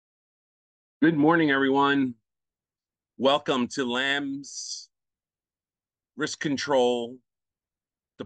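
A middle-aged man speaks calmly through an online call, in short phrases with pauses.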